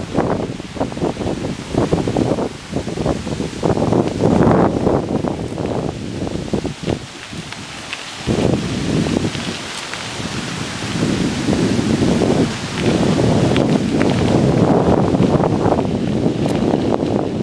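Wind buffets the microphone.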